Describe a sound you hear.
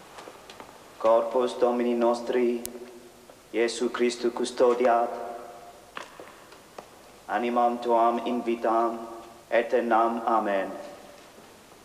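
A man chants a sung prayer in an echoing hall.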